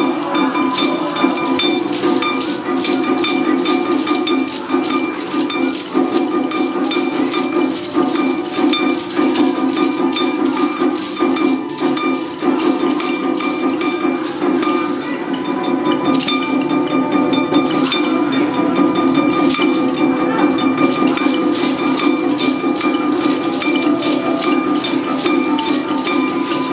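Taiko drums are struck in a hall.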